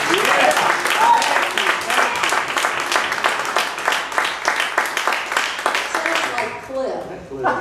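A man claps his hands.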